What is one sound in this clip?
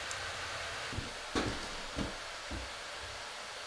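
Hands bump and knock against a wooden shelf.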